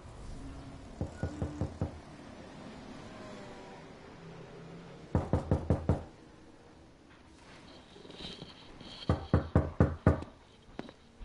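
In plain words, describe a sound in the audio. Someone knocks firmly on a wooden door several times.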